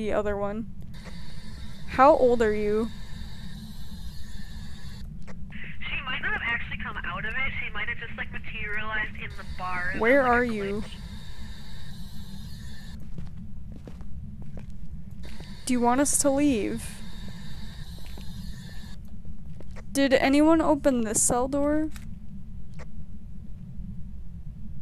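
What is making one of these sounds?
Radio static hisses and crackles as a radio is tuned between stations.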